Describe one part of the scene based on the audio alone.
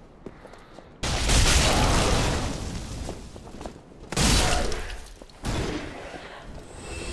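A fiery blast roars loudly.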